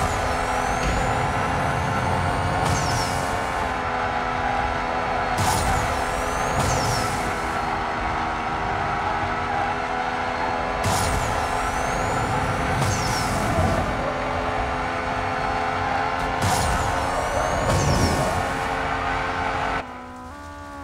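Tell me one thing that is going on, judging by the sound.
A sports car engine roars at high speed and holds a steady pitch.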